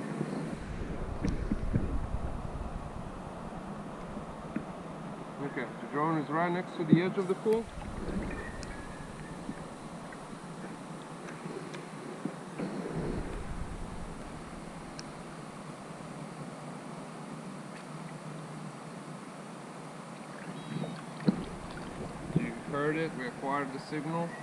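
Water splashes and sloshes around a man wading in a pool.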